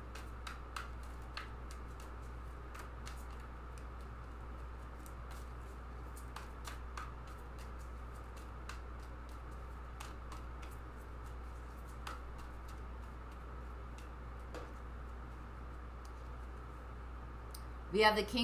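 Playing cards riffle and click softly as they are shuffled.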